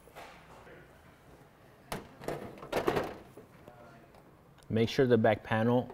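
A man handles a metal panel.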